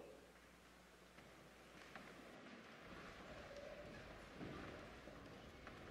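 A congregation shuffles and kneels down.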